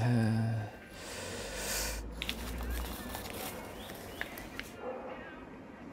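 Paper rustles in someone's hands.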